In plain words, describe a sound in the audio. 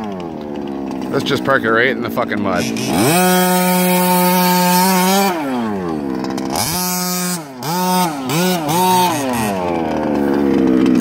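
A small electric motor whines, rising and falling in pitch as a toy car races.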